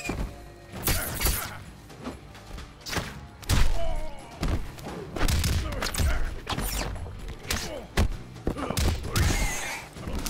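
Heavy punches and kicks land with sharp thuds and smacks.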